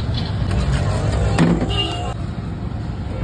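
A metal knife taps on a metal counter.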